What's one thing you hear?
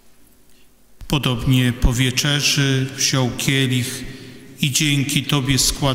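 A man chants through a microphone in a large echoing hall.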